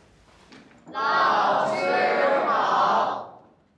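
A group of young students speaks a greeting loudly in unison indoors.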